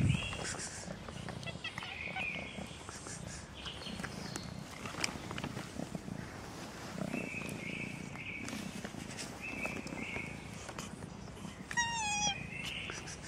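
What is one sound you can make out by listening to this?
A young cat mews close by in high, thin calls.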